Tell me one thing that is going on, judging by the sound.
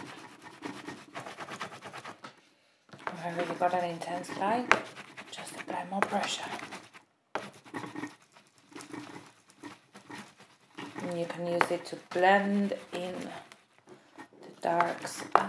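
Soft pastel rubs and scratches on paper.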